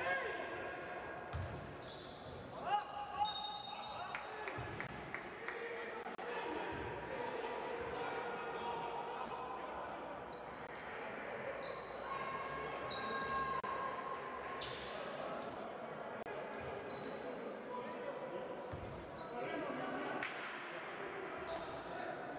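A basketball thumps as it is dribbled.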